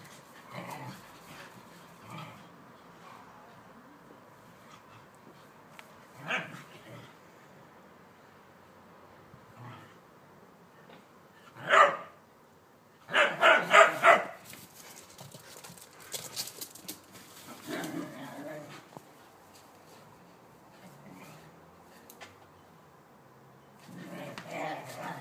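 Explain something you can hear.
Dogs growl and yelp while play-fighting.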